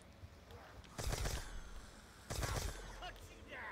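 A gun fires loud bursts of shots.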